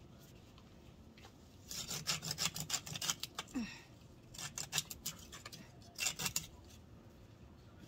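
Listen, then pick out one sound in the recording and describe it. A hand saw rasps back and forth through a plant stem in quick strokes.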